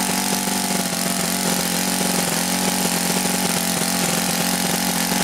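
A small model engine runs at a high, steady buzzing whine close by.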